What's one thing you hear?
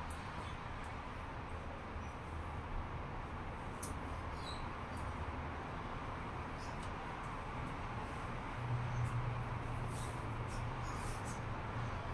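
High heels click on a hard floor.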